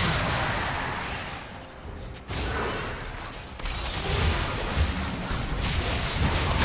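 Magic spells crackle and blast in a fast fantasy battle.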